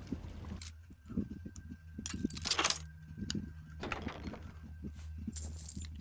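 Metal lock pins click as a lock is picked.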